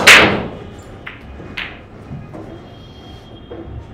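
Billiard balls click against each other and roll across the table.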